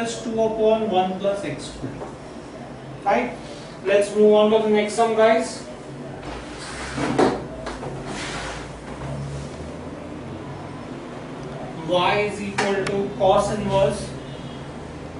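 A man explains calmly, close by.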